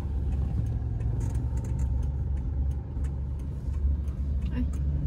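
A car engine rumbles low and steady from inside a moving vehicle.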